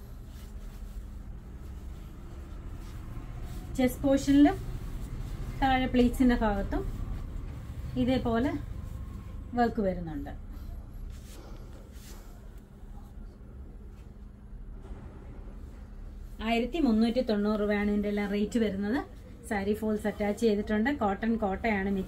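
Fabric rustles as it is unfolded and handled.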